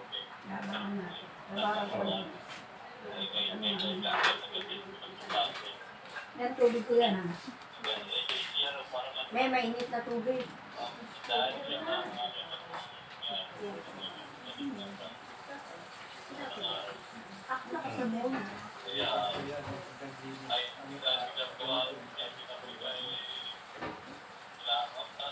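Several men and women chat casually nearby, indoors.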